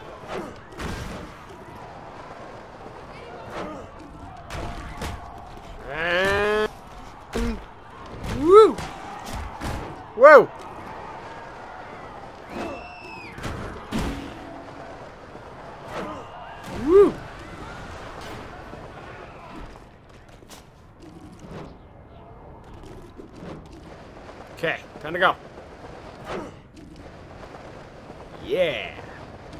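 Heavy thuds and impacts land in quick bursts.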